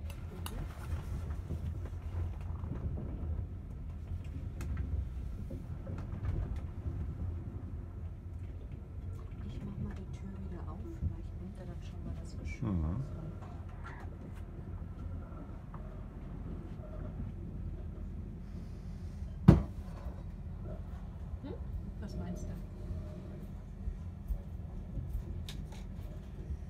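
Wheels clatter and knock over rail joints.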